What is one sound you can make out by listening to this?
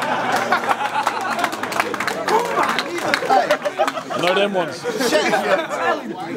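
A crowd of young men laughs.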